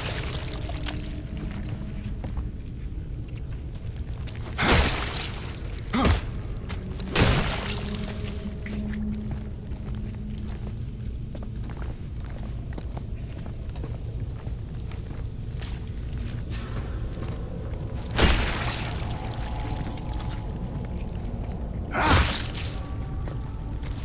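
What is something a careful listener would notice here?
Heavy boots tread on metal grating and dirt.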